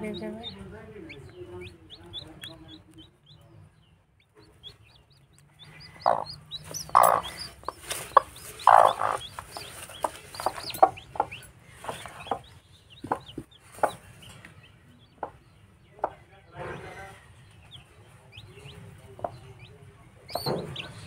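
A hen clucks softly and grumbles close by.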